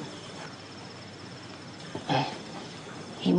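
A middle-aged man speaks firmly.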